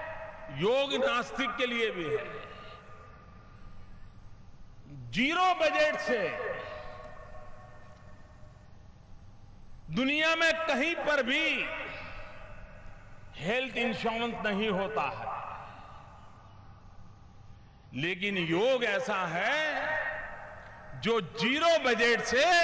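An elderly man gives a forceful speech through a microphone and loudspeakers, in bursts with pauses.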